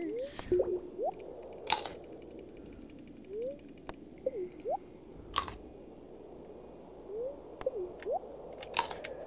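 Monsters in a video game make short chirping calls that slide up and down in pitch.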